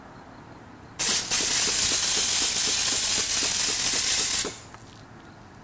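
A pressure washer sprays a loud, hissing jet of water against a metal wall.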